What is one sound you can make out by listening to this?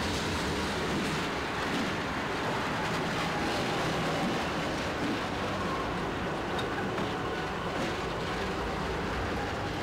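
A diesel locomotive engine rumbles loudly close by.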